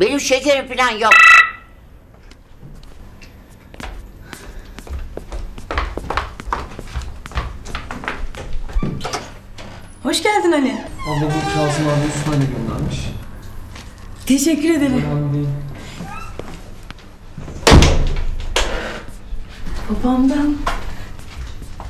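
A young woman speaks cheerfully.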